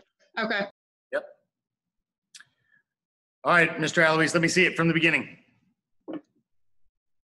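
A man calls out short commands, heard through an online call.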